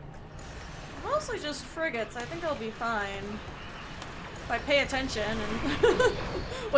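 A young woman talks animatedly into a microphone.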